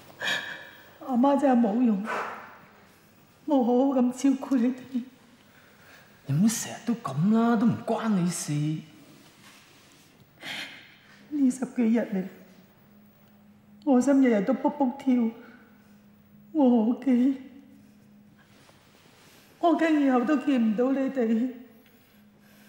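A middle-aged woman speaks while sobbing up close.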